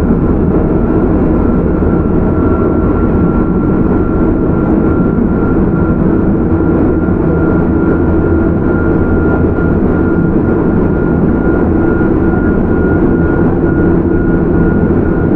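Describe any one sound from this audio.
An electric train rumbles steadily along the tracks close by.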